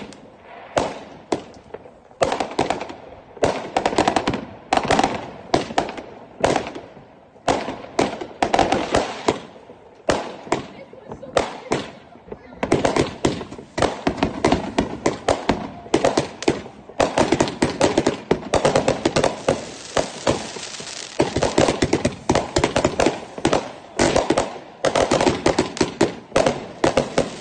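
Fireworks bang and crackle in rapid bursts nearby.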